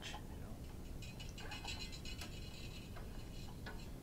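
A guitar string rattles and scrapes as it is pulled through.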